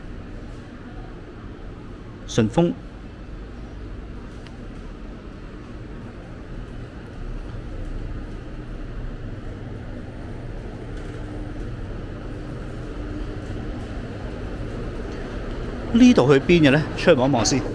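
A steady low hum of ventilation fills a large, echoing indoor hall.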